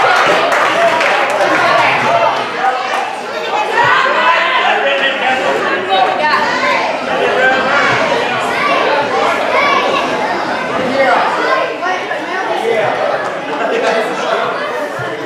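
A crowd of men, women and children chatters loudly in a large echoing hall.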